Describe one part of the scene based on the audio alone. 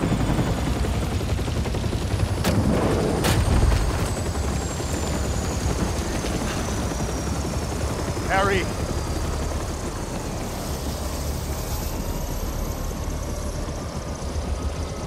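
A helicopter engine rumbles and its rotor thumps steadily.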